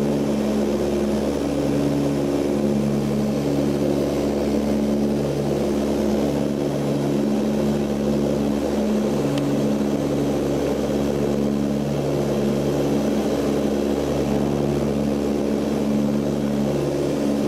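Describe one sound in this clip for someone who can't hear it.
A propeller engine drones loudly and steadily with a throbbing hum, heard from inside an aircraft cabin.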